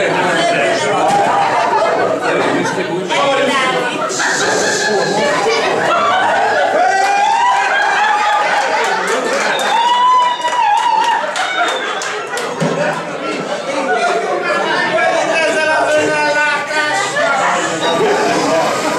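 A crowd of adults chatters and laughs loudly in a large room.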